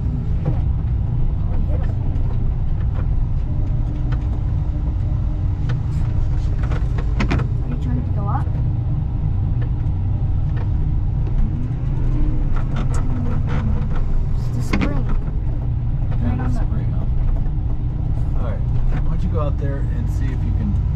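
A snowplow blade scrapes and pushes through snow.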